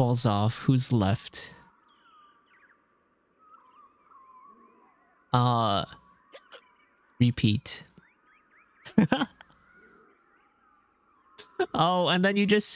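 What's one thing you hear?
A young man speaks with animation into a close microphone, in short bursts with pauses.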